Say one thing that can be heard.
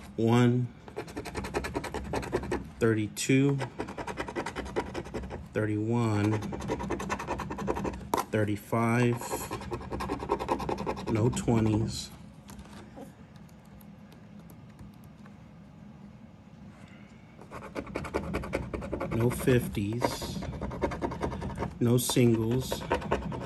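A plastic scraper scratches rapidly across a card.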